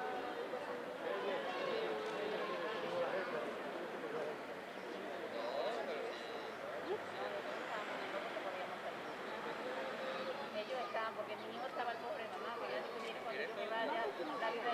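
A group of men and women chat in a murmur nearby, outdoors.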